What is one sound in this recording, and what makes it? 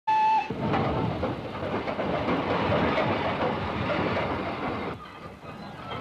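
A steam locomotive chugs loudly into a station.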